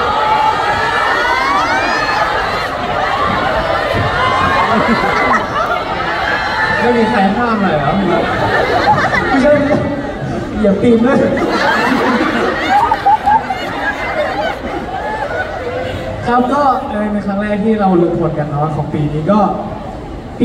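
A young man speaks with animation through a microphone over loudspeakers.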